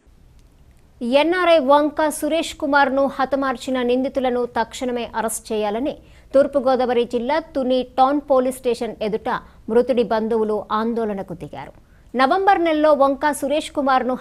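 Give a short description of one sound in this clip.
A young woman speaks clearly and steadily, reading out close to a microphone.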